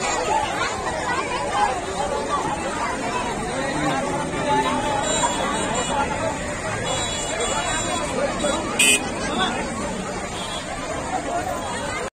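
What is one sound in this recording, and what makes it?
A crowd of men and women talks and shouts excitedly close by, outdoors.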